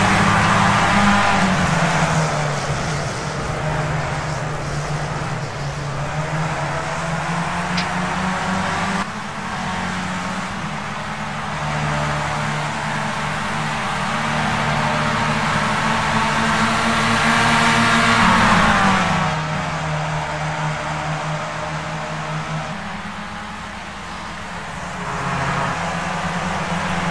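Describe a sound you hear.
A racing car engine drones loudly at high revs, its pitch rising and dropping with gear changes.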